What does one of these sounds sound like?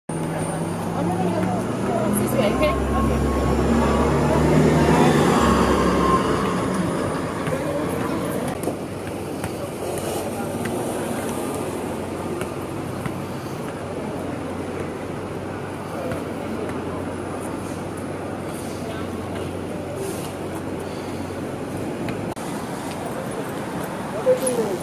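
Steady city traffic hums outdoors.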